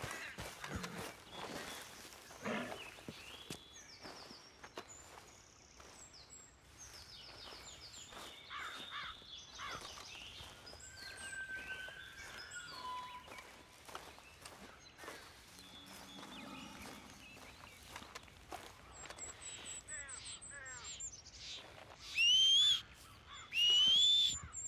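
Footsteps swish through grass and crunch on dirt.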